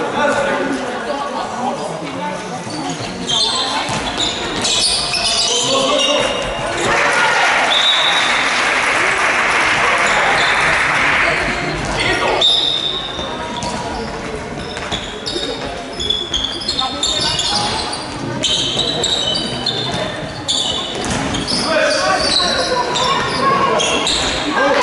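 A ball thuds as it bounces on a hard floor.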